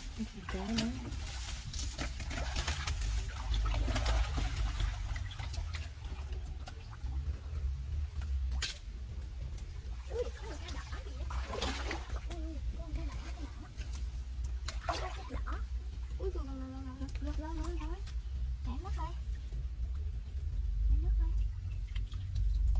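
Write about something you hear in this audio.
Water splashes and sloshes.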